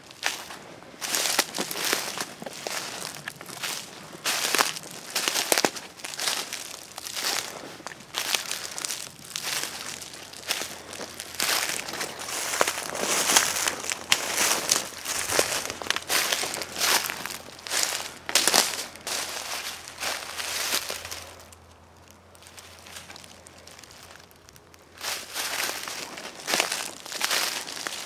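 Footsteps crunch quickly through dry leaves.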